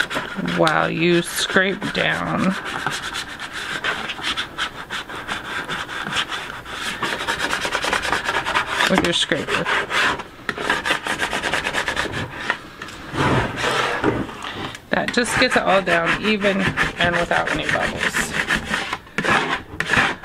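A plastic scraper rubs across tape on a plastic bucket.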